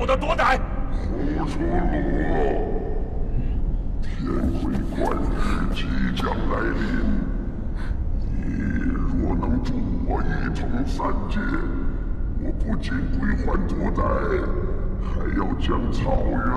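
A woman speaks in a low, calm voice.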